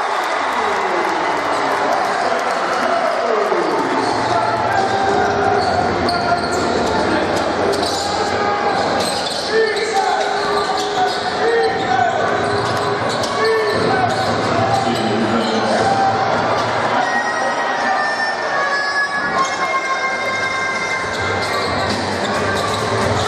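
A large crowd cheers and chatters loudly in an echoing hall.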